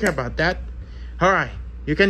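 A disc clicks into place on a player's spindle.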